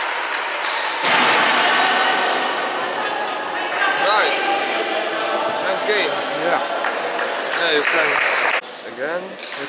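A crowd cheers and claps loudly in a large echoing hall.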